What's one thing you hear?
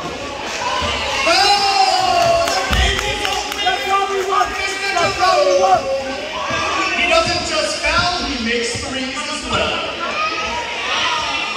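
A crowd of spectators cheers and shouts loudly in a large echoing gym.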